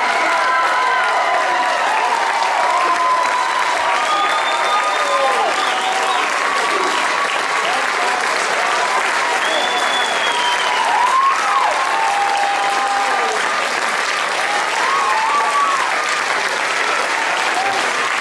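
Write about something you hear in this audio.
Young men cheer loudly.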